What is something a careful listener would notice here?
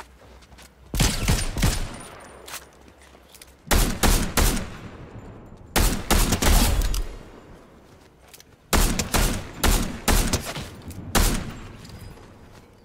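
Rifle shots crack loudly in quick bursts.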